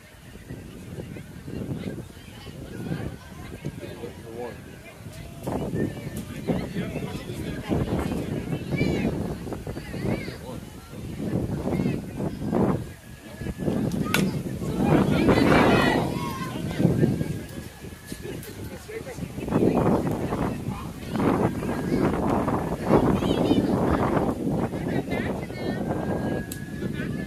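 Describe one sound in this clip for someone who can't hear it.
A crowd of adults and children talks and cheers nearby outdoors.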